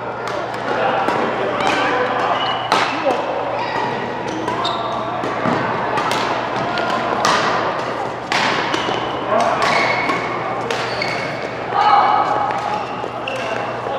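Shoes squeak on a sports floor.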